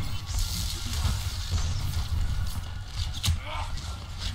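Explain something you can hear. An electric weapon crackles and buzzes in rapid bursts.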